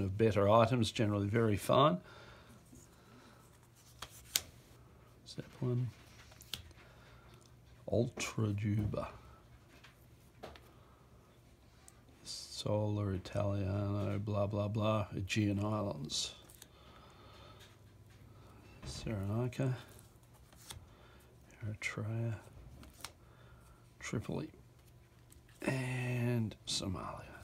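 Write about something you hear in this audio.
Stiff plastic cards rustle and tap as they are handled and set down.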